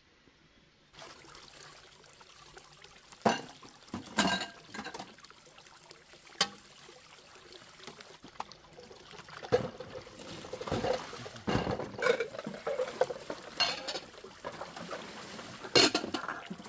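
Water splashes in a basin as dishes are washed.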